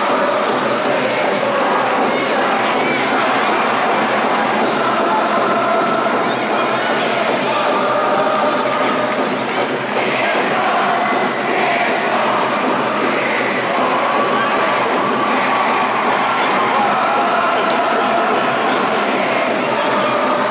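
A large stadium crowd chants and sings steadily, echoing under the roof.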